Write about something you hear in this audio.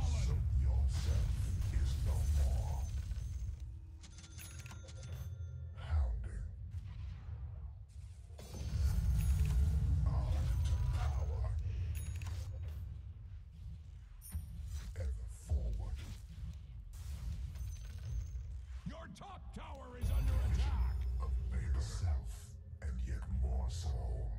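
Spell effects whoosh and crackle during a game battle.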